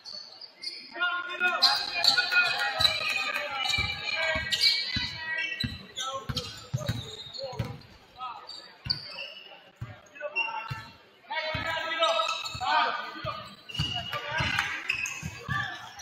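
A basketball bounces on a hard wooden floor in a large echoing gym.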